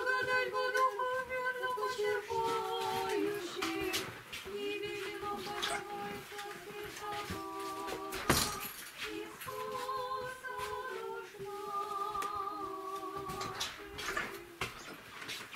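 An elderly man chants in a steady sung voice close by.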